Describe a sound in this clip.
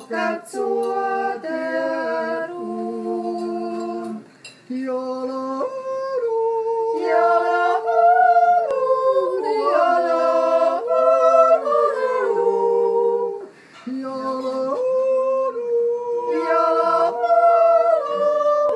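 A small group of men and women sing together in harmony close by.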